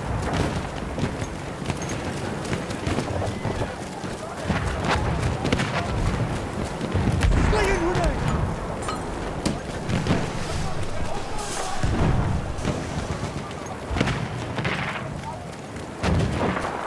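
Gunfire crackles in the distance.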